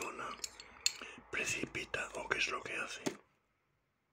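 A glass dish clinks as it is set down on a table.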